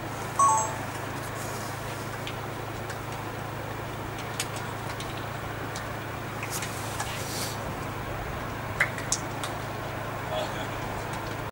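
Young men call out faintly across an open field outdoors.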